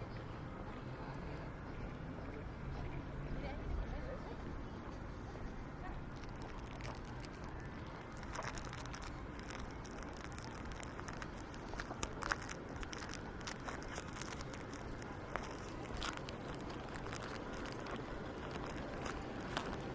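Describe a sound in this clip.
Outdoors, light wind rumbles against the microphone.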